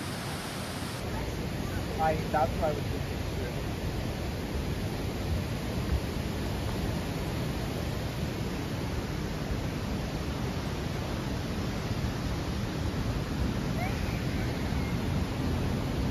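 A creek rushes steadily in the distance.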